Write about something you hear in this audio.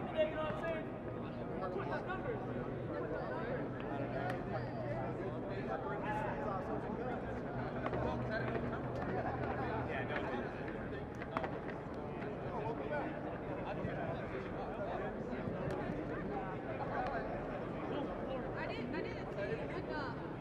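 Several men talk and call out nearby outdoors, in a babble of voices.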